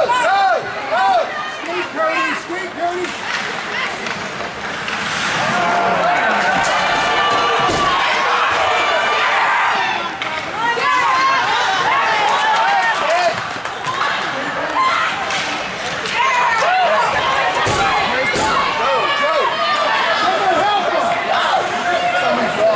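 Ice hockey skates scrape and carve across the ice.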